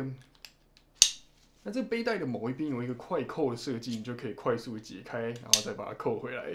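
Plastic buckles click as a young man fastens a strap.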